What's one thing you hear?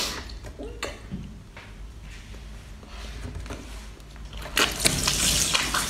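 A young woman bites and chews food with wet, crunchy sounds.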